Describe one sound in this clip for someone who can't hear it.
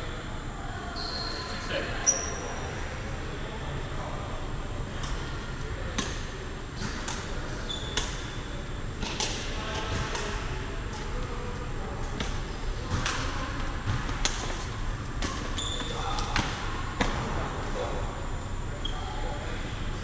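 Shoes squeak on a sports hall floor.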